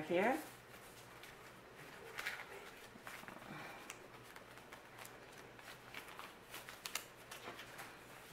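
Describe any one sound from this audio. Paper banknotes rustle and crinkle as they are counted by hand.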